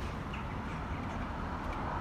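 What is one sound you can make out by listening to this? A finger presses a button.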